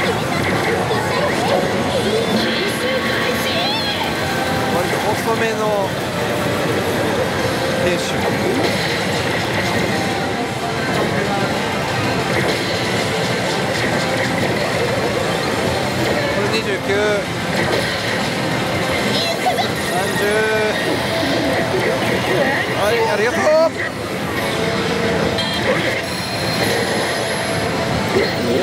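Slot machine reels spin and stop with clicks.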